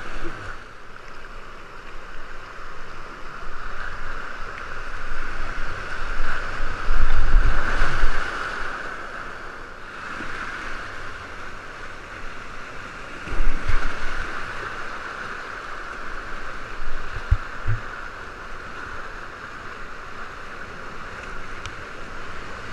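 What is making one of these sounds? Whitewater rushes and roars close by.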